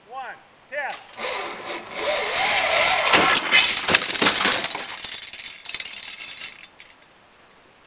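A pulley whirs loudly along a taut cable as a rider speeds past, then fades away.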